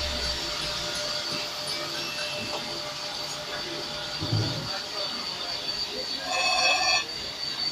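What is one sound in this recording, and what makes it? A cutting tool grinds against spinning metal.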